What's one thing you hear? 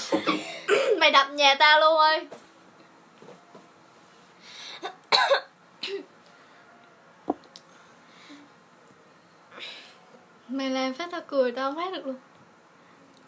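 A young girl sings close by.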